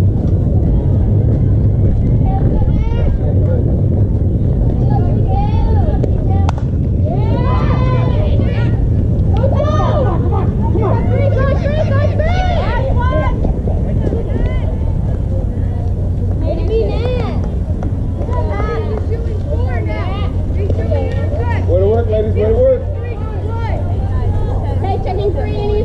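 Young girls shout and cheer from across an open field.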